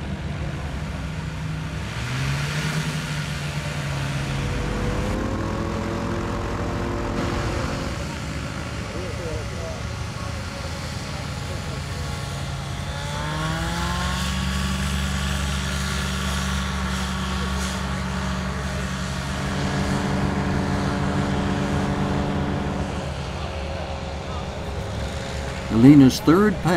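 A small propeller engine drones steadily, then revs up to a louder, higher roar.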